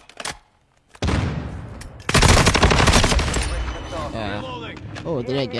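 Rapid gunfire from an automatic rifle bursts out loudly.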